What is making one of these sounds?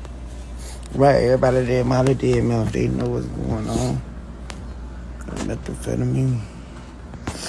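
A young man talks casually, close to a phone's microphone.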